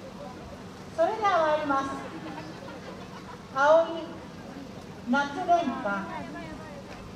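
A group of women performers shout loud calls in unison outdoors.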